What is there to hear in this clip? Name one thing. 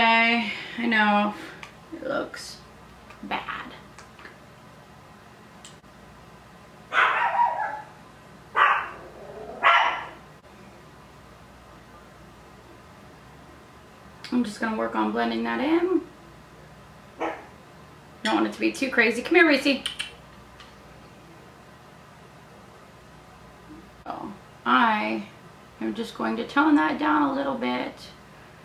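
A woman talks calmly and close by, in bursts with pauses.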